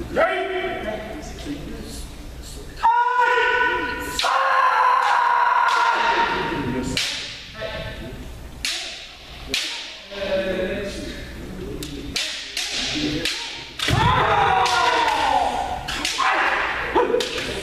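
Men shout loud, drawn-out battle cries that echo through a large hall.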